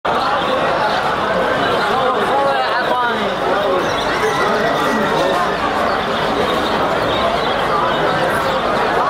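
A crowd of people chatters nearby, many voices overlapping.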